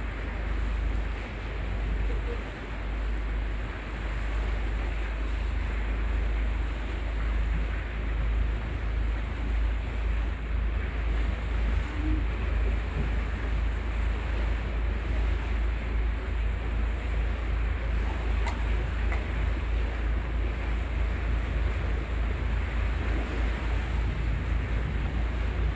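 Water laps and splashes steadily outdoors.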